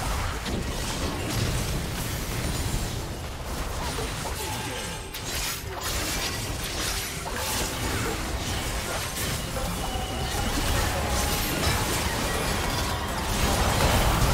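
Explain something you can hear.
Spell blasts and sword clashes ring out in a game battle.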